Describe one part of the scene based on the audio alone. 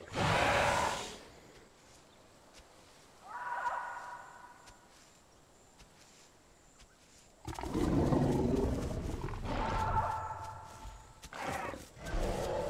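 A small dinosaur gives shrill chirping calls.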